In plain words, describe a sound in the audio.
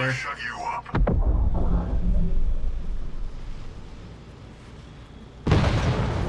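An explosion bursts with a deep rumble.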